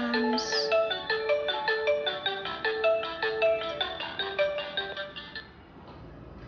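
A phone plays a bright ringtone melody.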